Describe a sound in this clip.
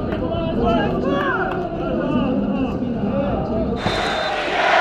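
Men shout excitedly nearby.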